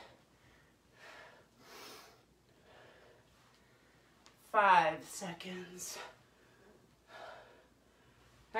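A woman breathes out hard with effort.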